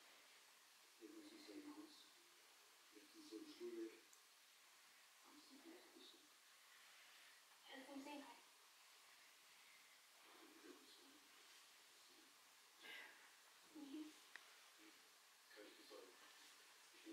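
A cat purrs softly close by.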